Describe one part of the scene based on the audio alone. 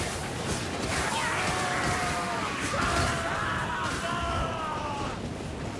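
Creatures snarl and shriek.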